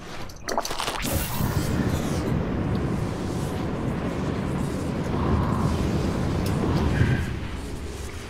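A rushing, crackling energy roar surges and stays loud.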